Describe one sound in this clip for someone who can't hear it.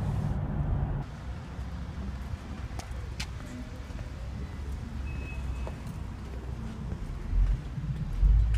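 A car engine idles outdoors, heard from outside the car.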